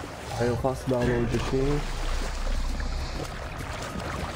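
Water splashes as a figure wades through it.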